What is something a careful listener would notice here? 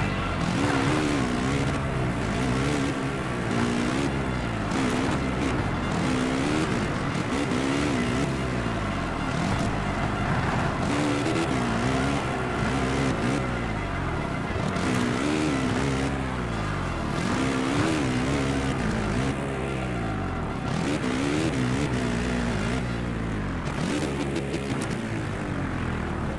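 Tyres churn through loose dirt.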